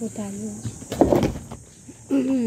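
A plastic bin bumps with a dull thud.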